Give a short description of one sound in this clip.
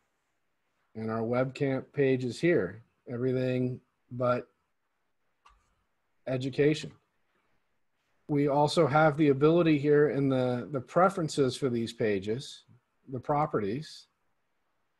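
A man speaks calmly and close to a microphone, explaining in pauses.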